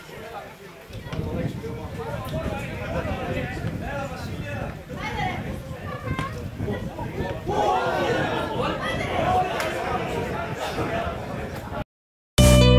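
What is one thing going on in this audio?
Young men shout to each other in the distance outdoors.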